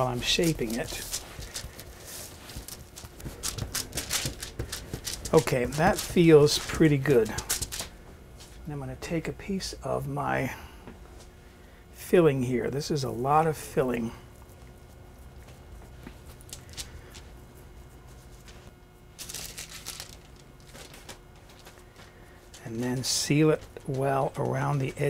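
Hands pat and press soft dough on crinkly paper.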